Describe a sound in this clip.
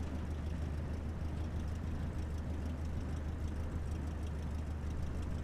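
A small propeller plane's engine drones steadily at idle.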